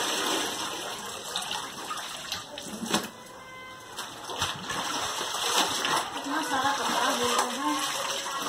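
Water drips and splashes from a lifted garment into a tub.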